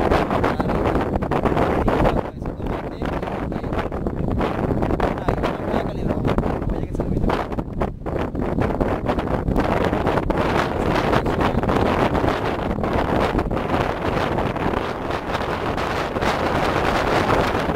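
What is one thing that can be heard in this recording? Wind buffets the microphone outdoors, with a steady low rumble.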